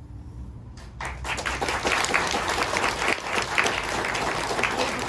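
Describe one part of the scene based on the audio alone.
A children's choir sings together.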